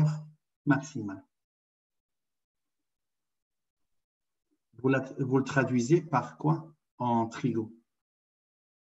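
A man speaks calmly through an online call, pausing between phrases.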